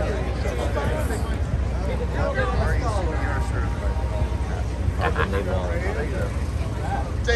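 A crowd of people chatters and calls out close by outdoors.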